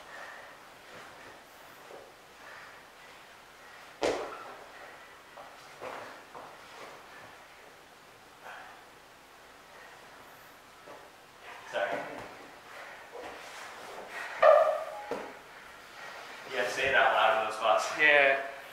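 Bodies thump and shuffle on a padded mat.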